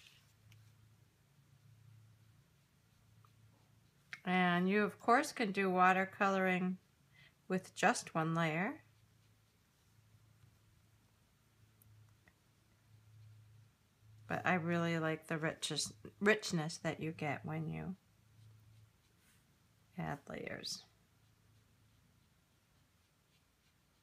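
A brush strokes across watercolour paper.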